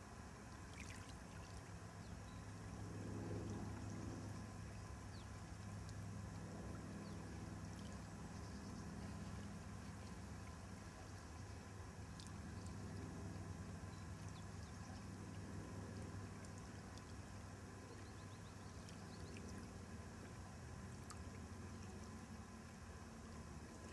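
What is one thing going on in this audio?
Small waves lap gently on a lake.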